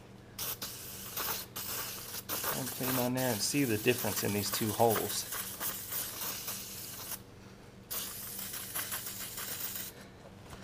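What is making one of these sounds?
A spray can hisses in short and long bursts.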